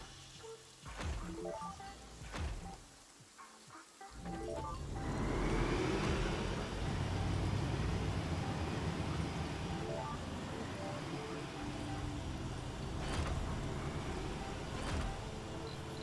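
Soft interface clicks sound as buildings are placed.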